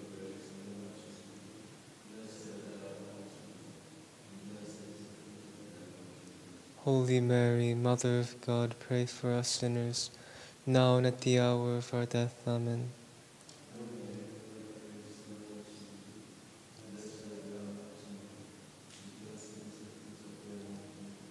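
A man chants a prayer in a low voice, echoing in a large, reverberant room.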